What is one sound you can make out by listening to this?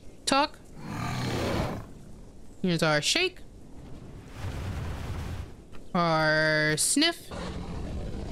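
An animal gives short, high, wavering calls.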